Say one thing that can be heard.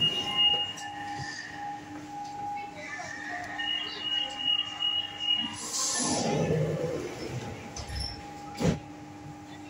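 A subway car hums steadily.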